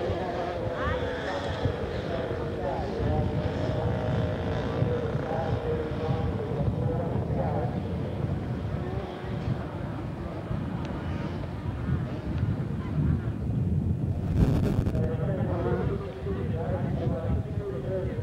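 Dirt bike engines rev and whine at a distance, rising and falling.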